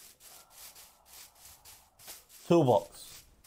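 Footsteps pad quickly over grass.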